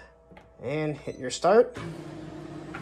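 A button beeps when pressed.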